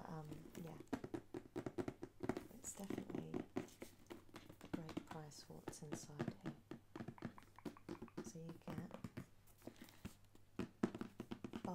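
Fingers tap and brush against a cardboard box.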